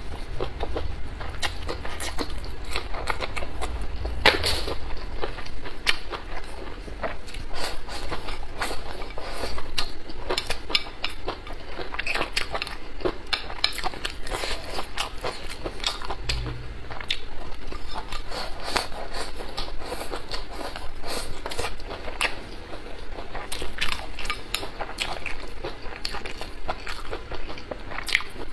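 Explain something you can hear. A young woman chews and slurps food loudly and close to a microphone.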